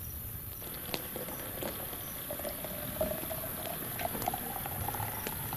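Water pours from a metal pot into a jug.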